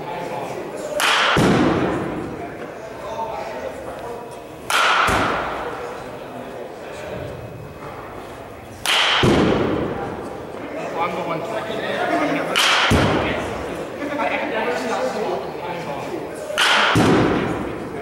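A bat cracks sharply against a ball, ringing in a large echoing hall.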